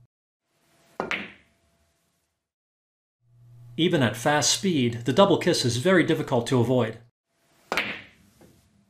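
A cue tip strikes a ball with a sharp click.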